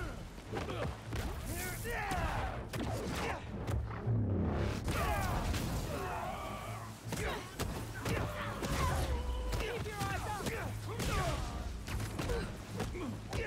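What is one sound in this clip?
Punches and kicks land with sharp thuds in a video game fight.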